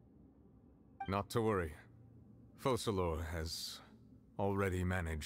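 A man speaks calmly in a deep voice, close by.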